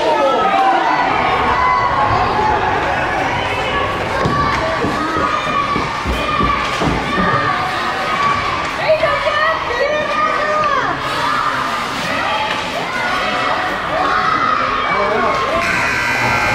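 Ice skates scrape across ice.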